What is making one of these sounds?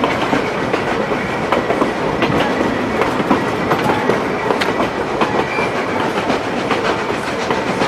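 Train wheels clatter over rail joints on a moving steam train.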